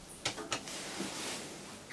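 Elevator buttons click.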